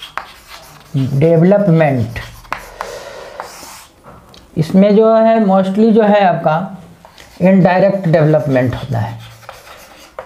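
An older man speaks calmly and clearly nearby.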